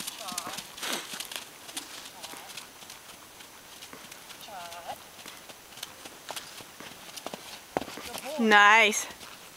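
A horse trots with soft hoofbeats on grass.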